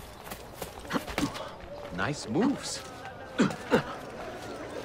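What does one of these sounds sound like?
Feet land with heavy thuds after a jump.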